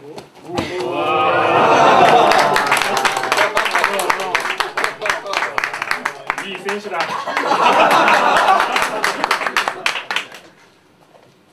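A crowd claps rapidly.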